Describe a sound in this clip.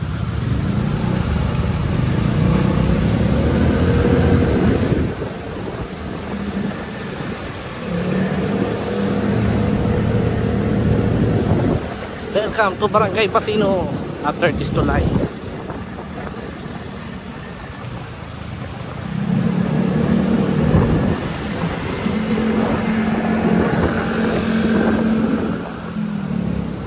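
A vehicle engine hums nearby on a street.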